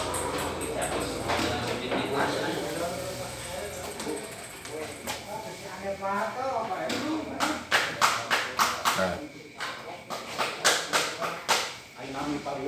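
A ping pong ball clicks back and forth off paddles and a table.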